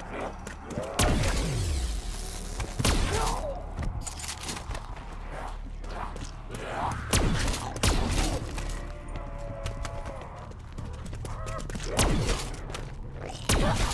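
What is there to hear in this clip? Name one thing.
Zombies groan and snarl.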